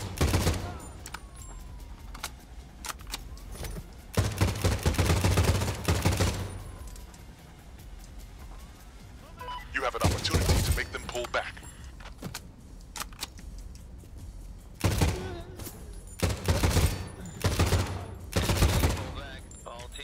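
Rifle gunfire rings out in loud, rapid bursts.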